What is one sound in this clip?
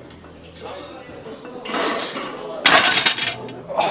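A barbell drops and clanks onto the floor.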